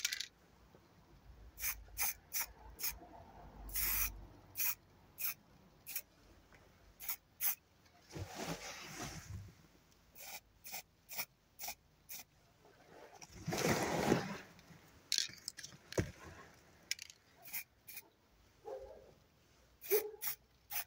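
A spray can hisses in short bursts and longer sprays.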